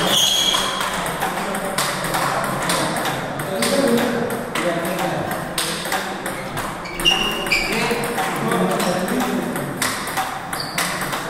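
Several people chat in the background.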